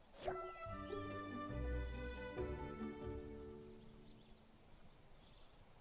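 A short game jingle plays with bright chiming notes and fades away.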